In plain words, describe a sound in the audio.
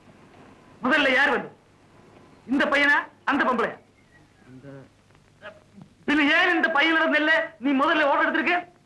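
An elderly man speaks, close by.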